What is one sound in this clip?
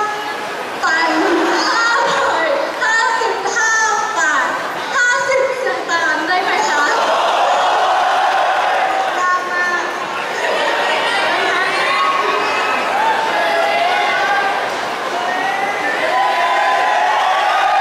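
Young women laugh together.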